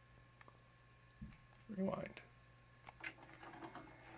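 A remote control button clicks.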